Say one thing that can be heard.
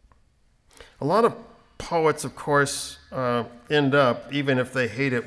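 An older man reads aloud into a microphone, calmly and with expression.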